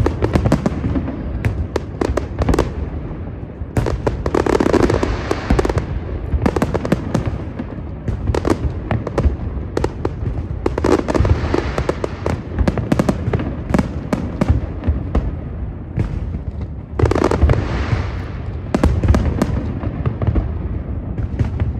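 Fireworks bang and crackle in quick bursts, echoing across open water.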